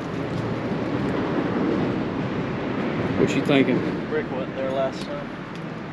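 A man digs and scrapes in the dirt with his hands.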